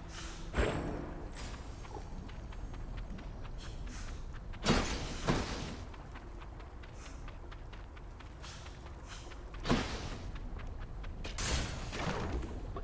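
Game sound effects whoosh and crash in sudden bursts.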